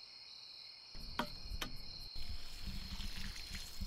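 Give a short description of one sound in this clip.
Water pours from a watering can onto soil.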